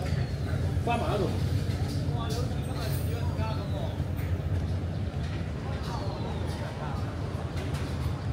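People talk in the distance.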